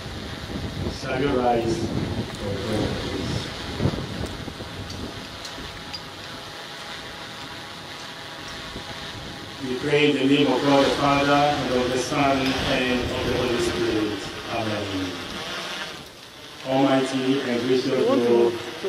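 A man speaks slowly and solemnly through a microphone and loudspeaker outdoors.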